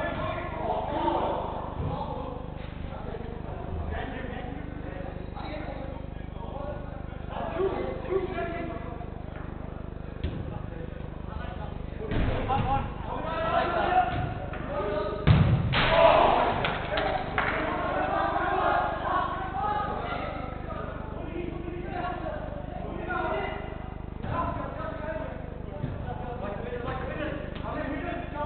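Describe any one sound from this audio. Men shout and call out to each other across a large echoing indoor hall.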